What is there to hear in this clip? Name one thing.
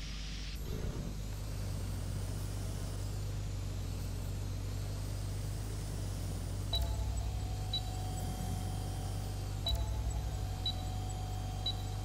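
A small drone buzzes steadily as it flies.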